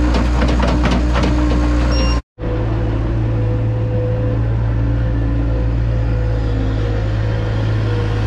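A skid steer loader's diesel engine runs loudly and steadily.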